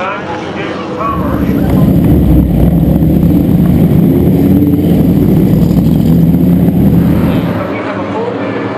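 Racing car engines roar loudly close by.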